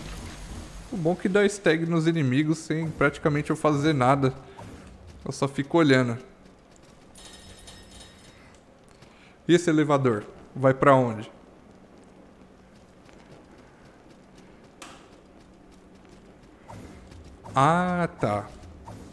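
A young man talks with animation close to a microphone, in short bursts.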